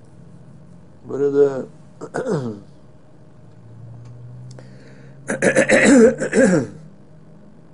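An elderly man speaks calmly and slowly close to a microphone, with long pauses.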